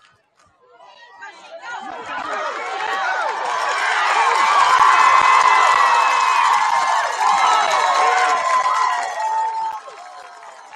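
A crowd cheers and roars loudly, then dies down.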